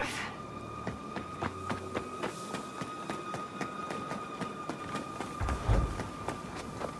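Footsteps run over dry grass and dirt.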